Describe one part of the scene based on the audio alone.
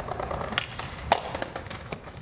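A skateboard strikes a metal handrail with a sharp clack.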